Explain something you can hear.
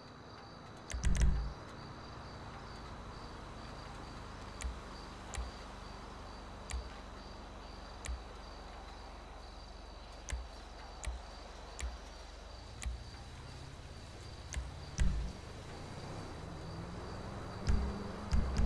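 Soft menu clicks tick every second or so.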